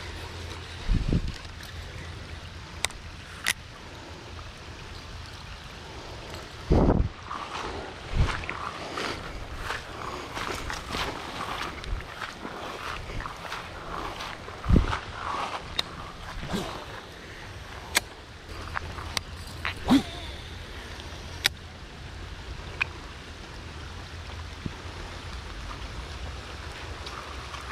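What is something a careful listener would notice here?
Rain patters steadily on water outdoors.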